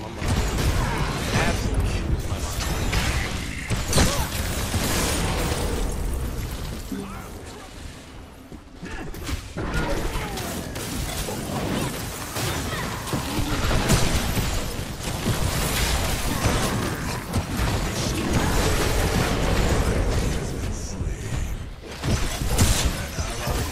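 Magical blasts crackle and whoosh in a fast fight.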